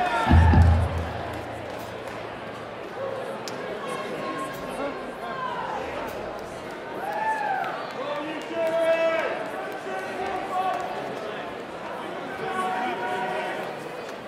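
Drums and cymbals are played on a kit.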